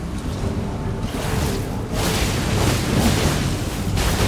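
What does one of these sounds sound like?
Heavy blows and bursts of noise crash during a fight.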